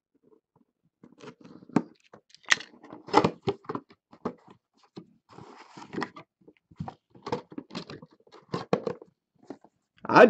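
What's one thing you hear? Cardboard packaging rustles and taps as hands open a box.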